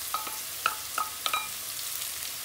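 A wooden spoon taps against a metal pan.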